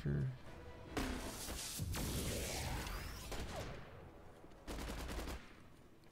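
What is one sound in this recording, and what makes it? Energy blasts and heavy hits crash in bursts during a fight.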